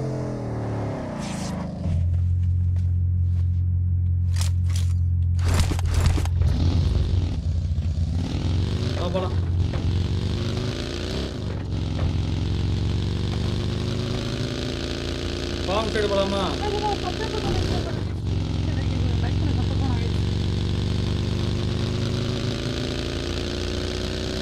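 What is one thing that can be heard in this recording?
A small buggy engine drones and revs as it drives over rough ground.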